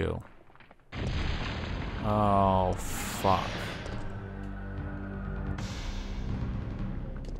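A wall bursts apart with a loud crash and rumble.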